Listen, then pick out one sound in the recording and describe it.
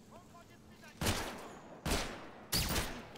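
A rifle fires several loud shots that ring out and fade.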